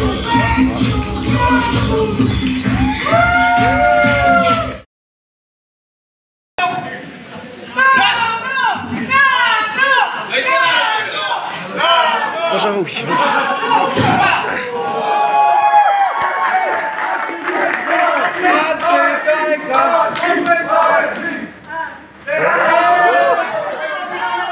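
A crowd cheers and shouts close by in a large echoing hall.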